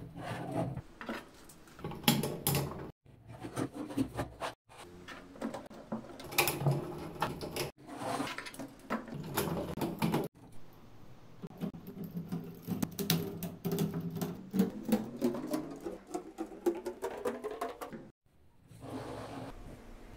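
Plastic building pieces click and clatter as they are handled.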